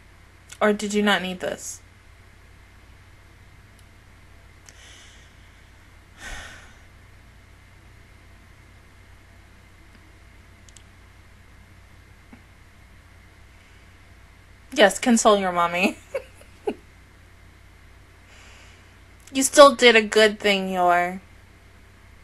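A young woman speaks close into a microphone in short, lively bursts with long pauses.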